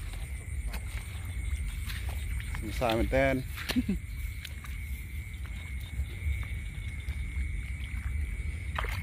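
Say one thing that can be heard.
Bare feet rustle through dry grass.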